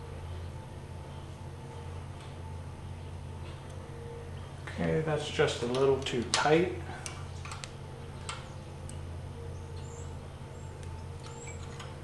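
A wrench clicks lightly against metal.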